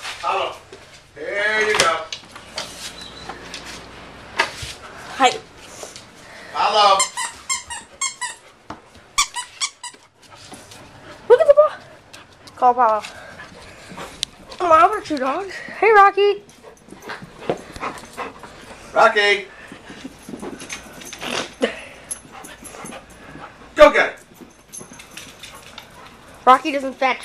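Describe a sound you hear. A dog whines and yelps close by.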